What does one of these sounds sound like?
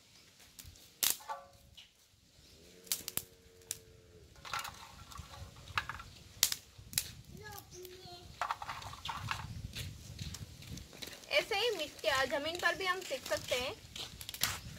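Dry twigs snap sharply.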